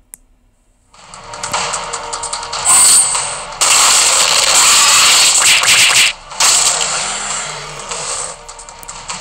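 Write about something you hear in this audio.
A magic spell bursts with a loud, rushing whoosh.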